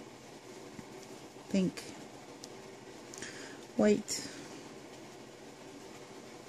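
Thread rustles softly as it is pulled through beads.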